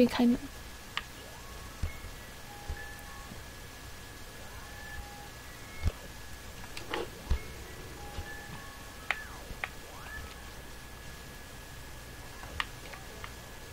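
Short, soft electronic game tones chime now and then.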